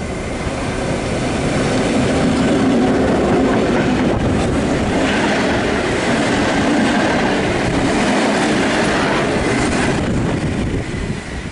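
A train roars past close by, its wheels rumbling and clattering on the rails.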